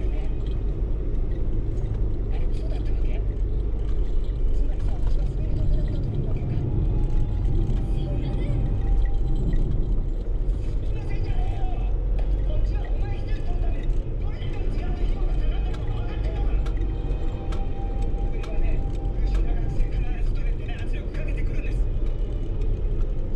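Tyres hiss on a wet road.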